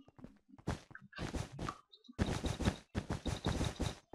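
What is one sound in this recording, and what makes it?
Blocks thud softly as they are placed.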